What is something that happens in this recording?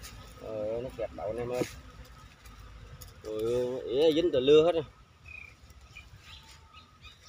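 Dry leaves rustle as a wire trap is handled.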